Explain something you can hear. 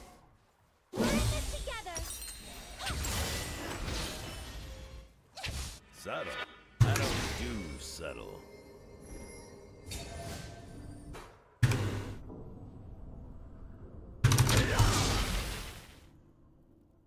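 Game sound effects clash and whoosh.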